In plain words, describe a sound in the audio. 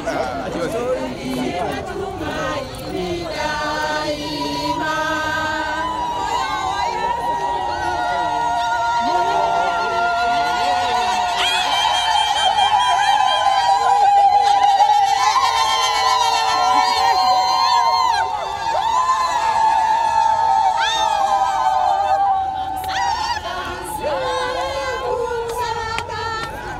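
A large crowd of women and men sings loudly together outdoors.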